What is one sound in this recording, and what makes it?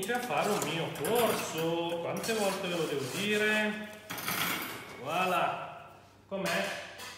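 A metal baking tray knocks and clatters as it is lifted away.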